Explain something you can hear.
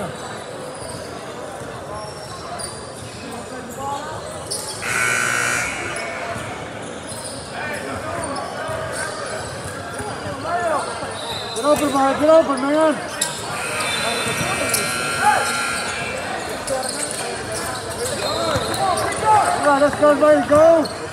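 Spectators, men and women, shout and cheer in an echoing gym.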